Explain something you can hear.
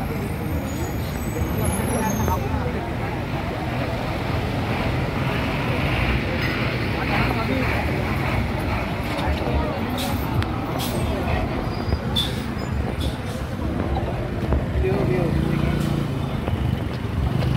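Motorbike engines hum as they ride past on a road.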